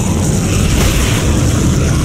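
A weapon fires with sharp blasts.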